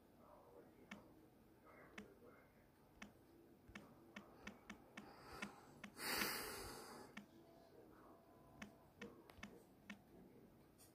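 Fingers tap lightly on a phone's touch keyboard.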